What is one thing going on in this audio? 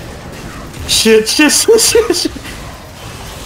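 Magic blasts and hits crackle and boom in a video game battle.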